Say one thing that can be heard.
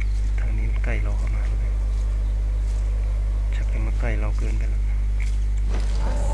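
Footsteps rustle softly through dry grass.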